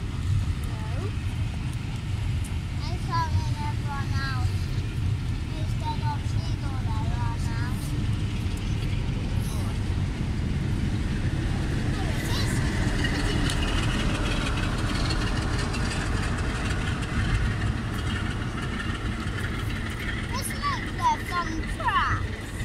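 A diesel locomotive rumbles as a train pulls slowly past.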